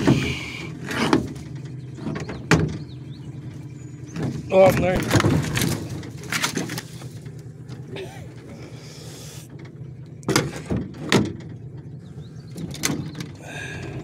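Objects knock hollowly against a metal boat hull.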